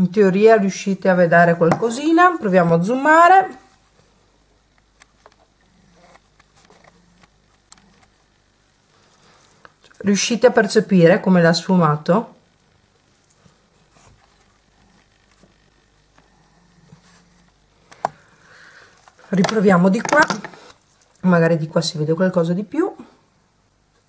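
A woman talks calmly and close by, in bursts with pauses.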